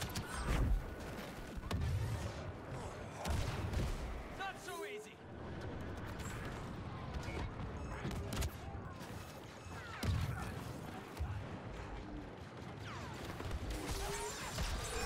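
Blasters fire in rapid bursts.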